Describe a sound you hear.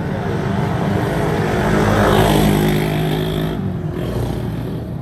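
A motor rickshaw loader passes close by.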